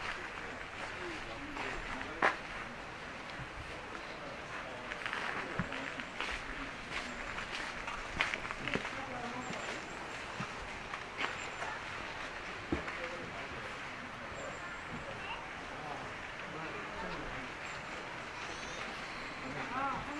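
A crowd of people chatters quietly in the distance outdoors.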